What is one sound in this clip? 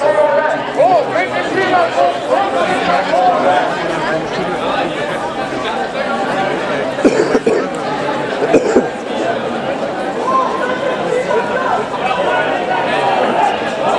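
A large crowd of men and women chatter as they walk outdoors.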